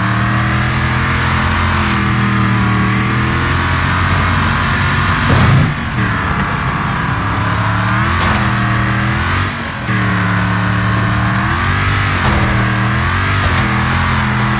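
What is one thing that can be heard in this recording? A car engine roars steadily, its pitch rising and falling as it revs.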